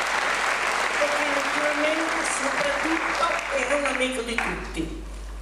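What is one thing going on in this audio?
An elderly woman speaks calmly into a microphone over a loudspeaker in a large hall.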